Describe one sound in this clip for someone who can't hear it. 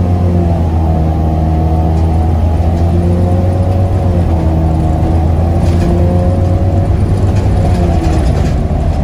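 A bus engine whines, its pitch gliding up and down as the bus speeds up and slows.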